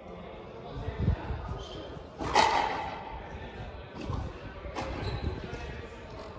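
A ball smacks against a wall, echoing in a large court.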